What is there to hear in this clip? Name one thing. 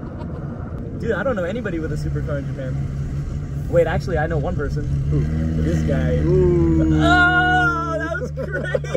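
A man talks and laughs inside a car.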